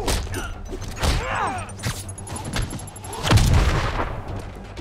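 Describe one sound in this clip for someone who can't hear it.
Heavy punches and kicks land with dull thuds.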